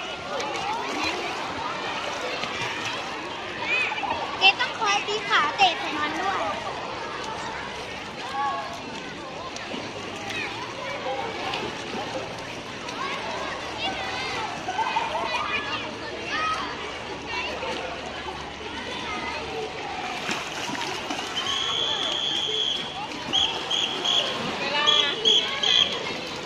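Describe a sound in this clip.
Water splashes as a child kicks and paddles through a pool.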